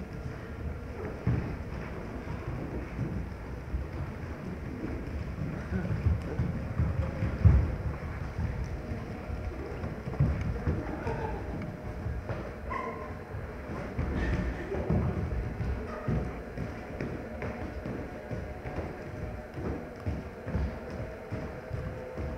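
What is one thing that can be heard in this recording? Bare feet thump and patter on a stage floor.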